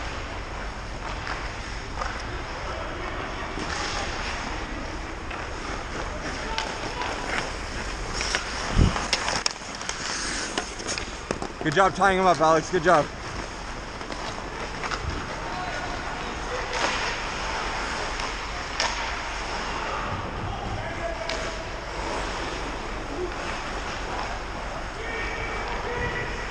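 Skates scrape across the ice in a large echoing rink.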